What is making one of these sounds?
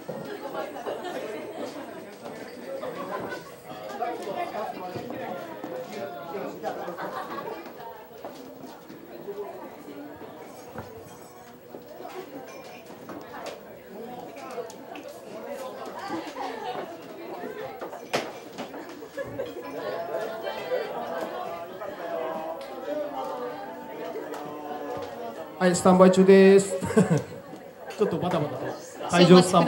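A crowd of men and women chatters in a busy room.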